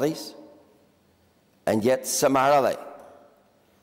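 An elderly man speaks in short bursts through a microphone in an echoing hall.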